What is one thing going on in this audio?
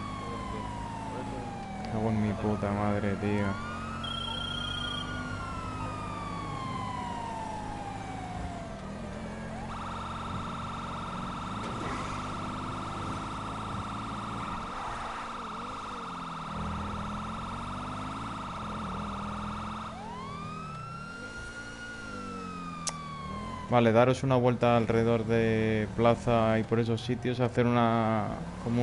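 A police siren wails and rises and falls in pitch.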